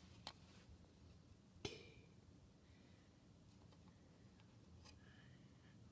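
Plastic toy pieces click and tap against each other.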